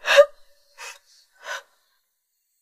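A young woman sobs and cries close by.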